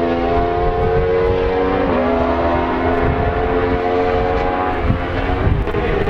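Several racing motorcycle engines scream at high revs and shift gears.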